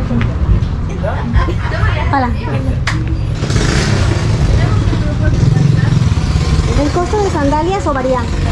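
A woman talks nearby in a casual tone.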